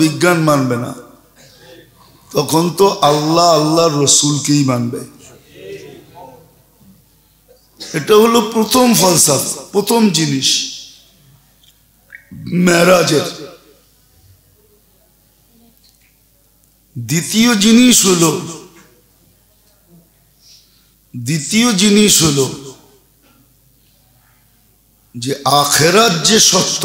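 An elderly man preaches into a microphone in loud, drawn-out bursts with pauses between them.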